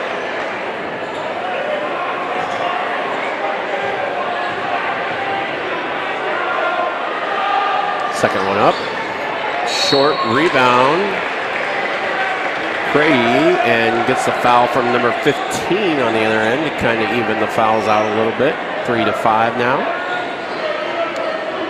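A crowd murmurs and chatters in a large echoing gym.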